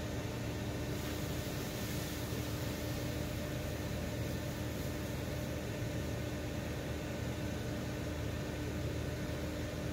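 A fire hose sprays water onto the flames.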